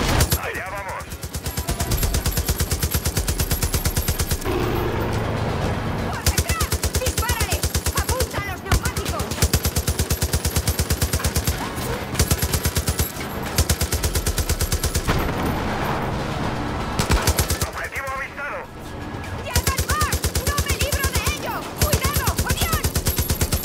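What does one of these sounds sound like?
A mounted machine gun fires rapid bursts close by.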